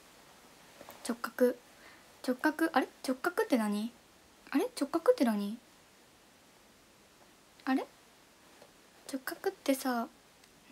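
A young woman speaks softly and calmly close to a microphone, in short bursts with pauses.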